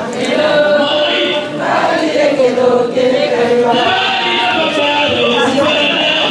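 Women sing loudly and joyfully close by.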